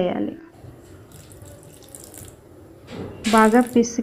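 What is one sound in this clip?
Water pours into a metal bowl.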